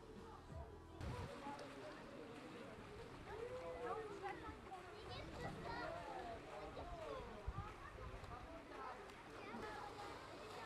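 Children call out and chatter around an outdoor pool.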